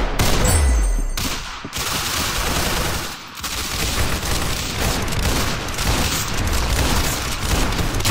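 Revolver shots bang out in quick succession.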